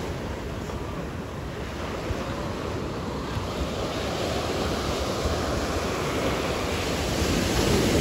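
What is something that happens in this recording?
Waves break and wash up onto the shore, growing louder.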